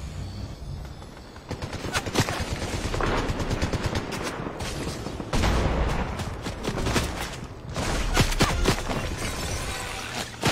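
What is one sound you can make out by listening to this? Footsteps thud quickly over grass.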